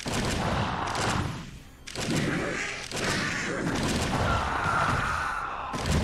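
Game creatures screech and clash in a noisy battle.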